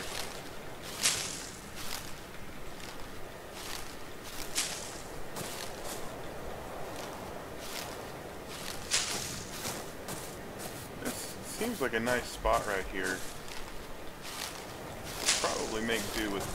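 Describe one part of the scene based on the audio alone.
Leafy bushes rustle sharply as they are struck again and again.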